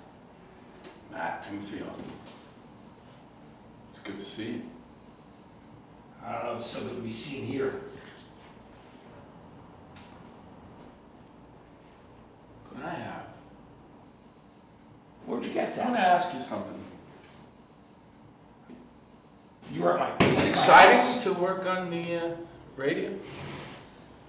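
A middle-aged man speaks in short, tense bursts close by.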